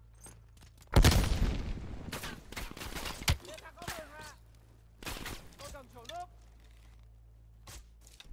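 Rifle shots crack and echo loudly in a cave.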